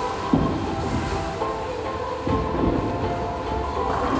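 Bowling pins clatter as a ball strikes them.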